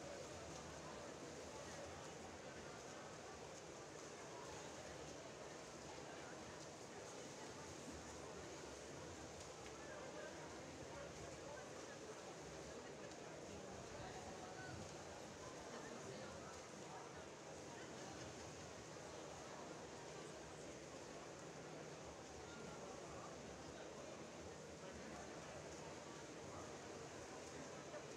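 Swimmers splash through the water in a large echoing hall.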